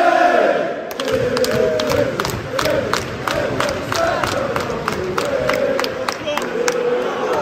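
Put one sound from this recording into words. A stadium crowd claps in a steady rhythm.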